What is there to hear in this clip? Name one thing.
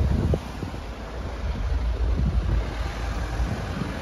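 An SUV turns close by.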